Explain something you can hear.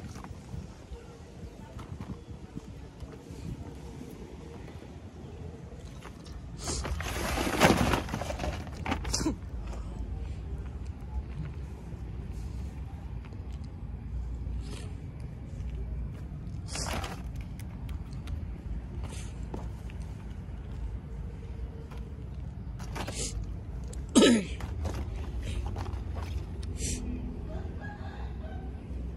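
Plastic toy packages crinkle and rustle as a hand takes them down.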